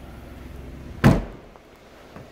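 A car's boot lid slams shut with a heavy thud.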